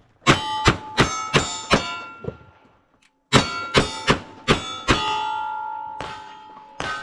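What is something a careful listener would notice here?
Bullets ring off steel targets.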